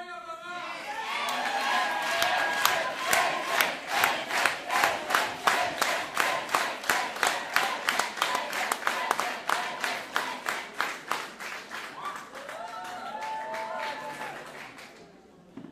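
A group of people clap their hands in a fast, steady rhythm.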